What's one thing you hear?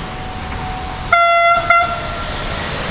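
A train horn sounds from a distance.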